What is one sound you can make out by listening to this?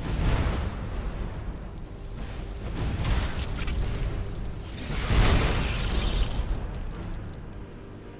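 Magic blasts explode with loud bursts.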